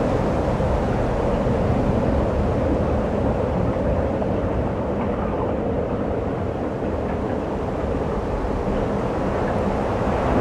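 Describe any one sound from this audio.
Ocean waves slosh and splash.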